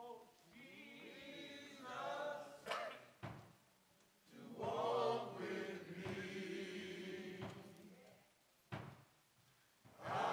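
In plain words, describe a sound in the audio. A choir of men sings together in an echoing hall.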